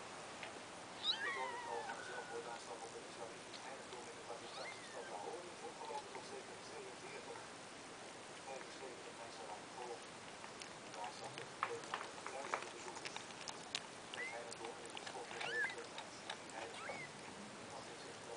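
A cat licks wet kittens with soft, wet smacking.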